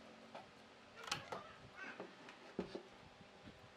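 A wooden board knocks and scrapes.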